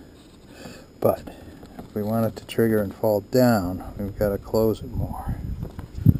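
A metal wire trigger clicks against a wooden board as it is set by hand.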